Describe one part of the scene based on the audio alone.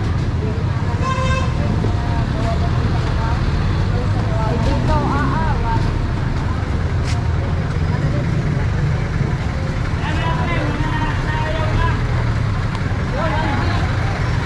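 Men and women chatter nearby on a busy street.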